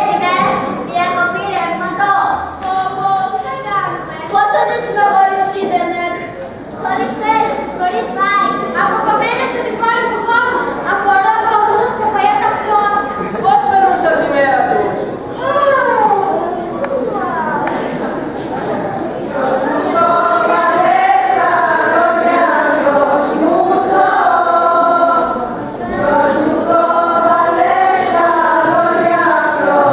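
A group of young people sings together in a large echoing hall.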